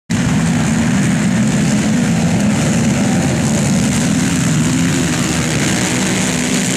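Quad bike engines roar loudly and steadily.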